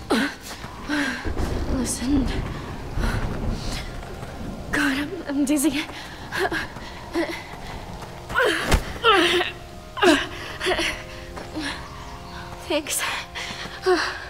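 A young woman speaks weakly and in pain, close by.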